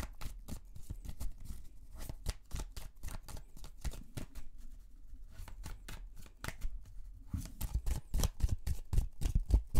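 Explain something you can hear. Cards riffle and clack as a deck is shuffled close by.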